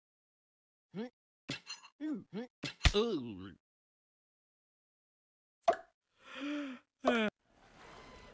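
A cartoon dog hums and grunts contentedly in a squeaky voice.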